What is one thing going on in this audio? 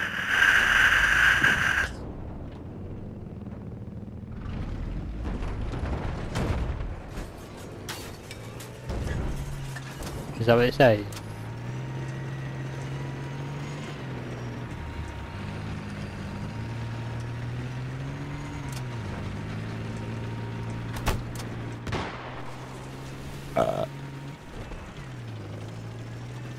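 A tank engine rumbles and whines as the tank drives.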